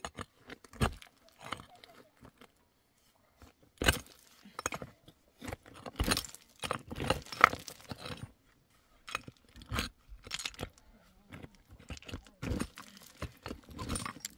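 A metal tool chops and scrapes into stony ground.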